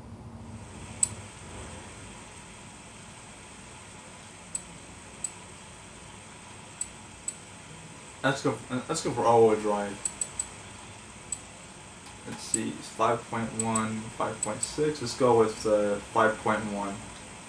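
Short menu clicks come from a video game on a television.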